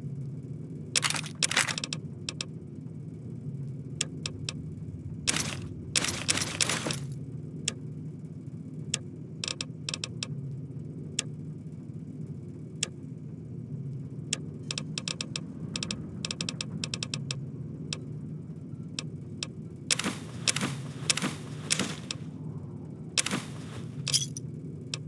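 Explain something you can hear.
Short menu clicks and ticks sound repeatedly, sometimes in quick bursts.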